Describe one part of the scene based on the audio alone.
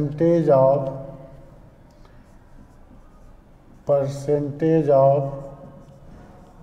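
A middle-aged man speaks slowly and clearly, in short phrases with pauses.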